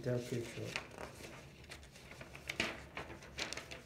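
Paper rustles and flutters.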